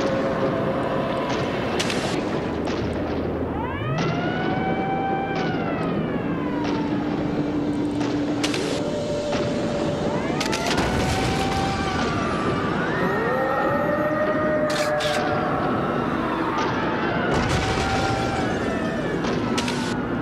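Game music plays with rising and falling electronic tones.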